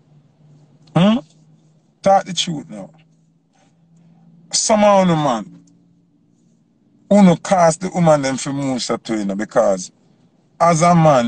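A young man talks with animation close to the microphone.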